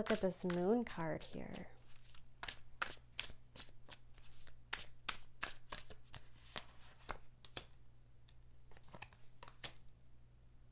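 Cards riffle and slap together as a deck is shuffled.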